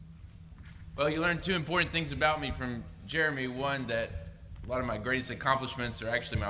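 A second man speaks steadily through a microphone.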